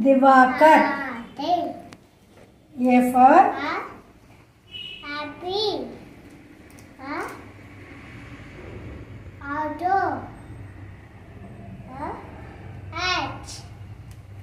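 A young child speaks loudly and clearly, saying words one at a time, close by.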